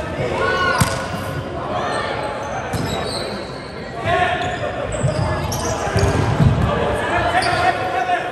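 Young men shout and call out to each other during play.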